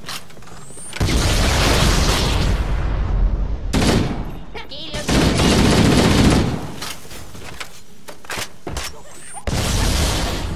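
A grenade explodes with a loud blast.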